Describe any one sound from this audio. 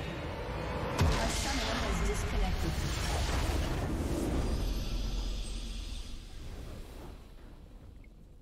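A huge explosion booms and rumbles away.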